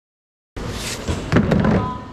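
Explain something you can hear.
A plastic tray scrapes along a metal counter.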